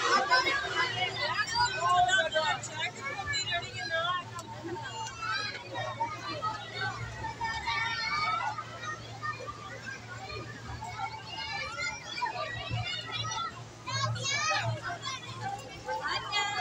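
Children chatter and shout excitedly nearby.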